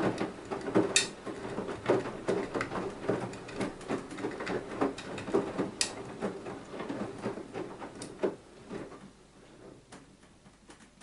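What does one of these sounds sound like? Small objects clatter against a washing machine drum.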